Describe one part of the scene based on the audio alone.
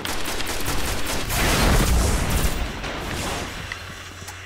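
Rapid gunfire blasts loudly, then stops.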